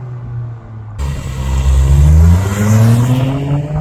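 A car engine revs loudly as the car drives past.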